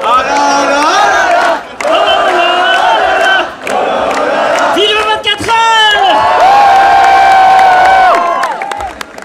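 A large group of young men sings loudly together through loudspeakers outdoors.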